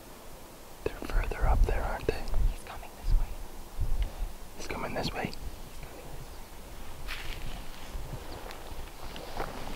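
Wind gusts and rumbles across open ground.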